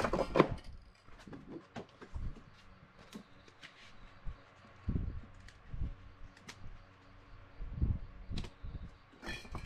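Stiff paper rustles and taps as a stencil is lifted and set down.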